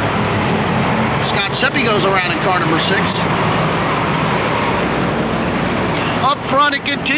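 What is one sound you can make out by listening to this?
Race car engines roar steadily around the track.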